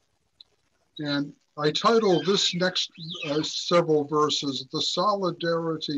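An elderly man speaks calmly into a microphone, as if in an online call.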